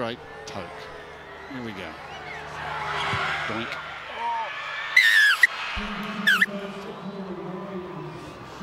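A large stadium crowd cheers and roars outdoors.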